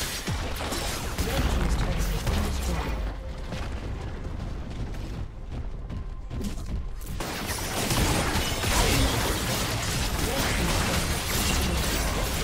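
A turret crumbles as it is destroyed.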